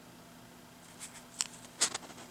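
Fingers rustle and tap against a paper page close by.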